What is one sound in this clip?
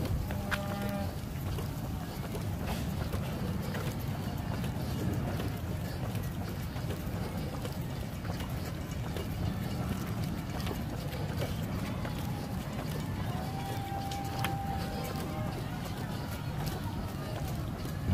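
Runners' footsteps patter on pavement in the distance.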